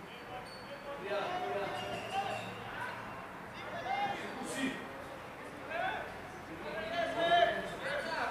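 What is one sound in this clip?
Men shout and call out to each other in the distance, in a wide open space.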